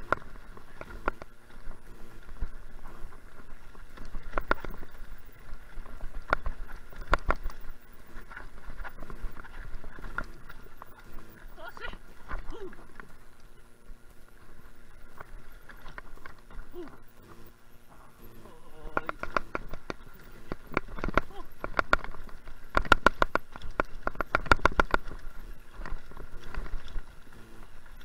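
A mountain bike rattles and clatters over a bumpy dirt trail.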